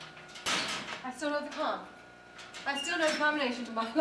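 A metal locker door clicks and swings open.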